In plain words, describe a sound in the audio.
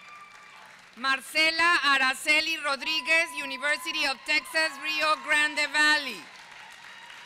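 A woman reads out loudly through a microphone and loudspeakers in a large echoing hall.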